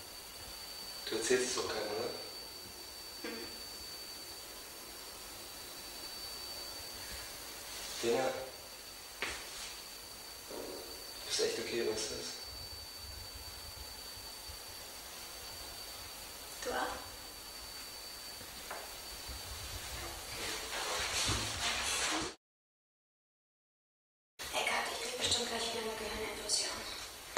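A young woman speaks in short bursts, close by in a small room.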